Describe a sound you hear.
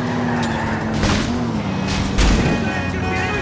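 A car scrapes against a truck with a loud crunch.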